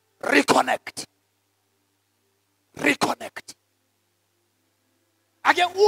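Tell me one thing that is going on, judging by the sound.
A man speaks with emphasis into a microphone, in short bursts with pauses.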